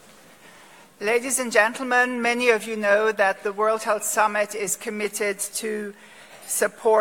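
An elderly woman speaks calmly into a microphone in a large echoing hall.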